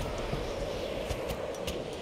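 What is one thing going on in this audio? A metal locker door rattles.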